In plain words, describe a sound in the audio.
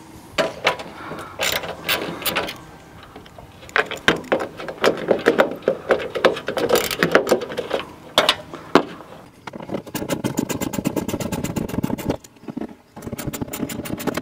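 Plastic parts click and knock as a headlight is worked loose.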